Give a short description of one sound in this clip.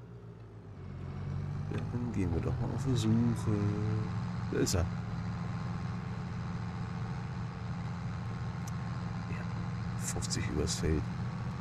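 A tractor engine roars louder as it works a field.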